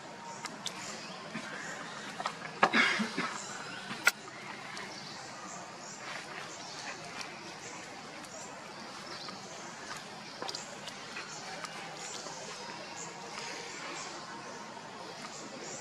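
A baby monkey's feet patter and scuffle on dry leaves and stone.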